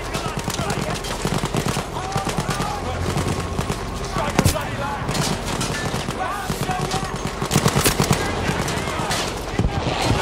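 Rifles and machine guns fire in rapid bursts close by.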